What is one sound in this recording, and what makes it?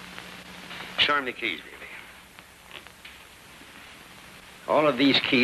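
A man speaks briskly.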